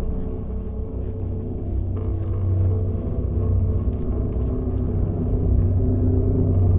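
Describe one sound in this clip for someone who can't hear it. Music with low, sustained tones plays steadily and slowly swells.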